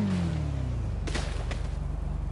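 A motorcycle crashes into a concrete barrier with a loud thud.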